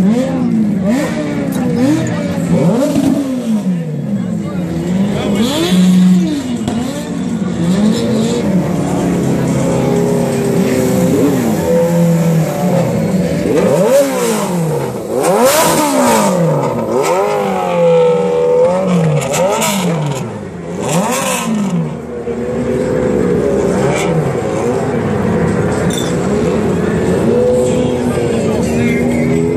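A motorcycle engine revs hard over and over, its pitch rising and falling.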